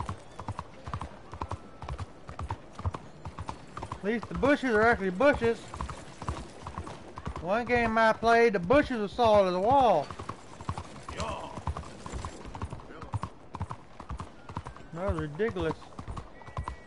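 Horse hooves clop on a cobbled street.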